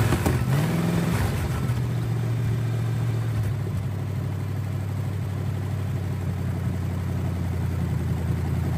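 An old car engine settles into a rough, steady idle.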